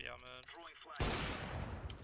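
A sniper rifle fires a loud, sharp shot.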